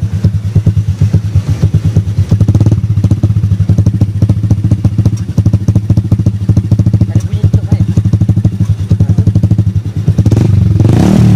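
A motorcycle engine idles with a deep, loud burble through its exhaust.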